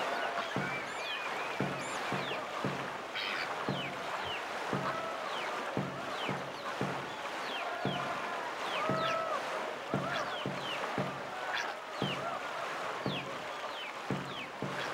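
Paddles splash through water in a quick, steady rhythm.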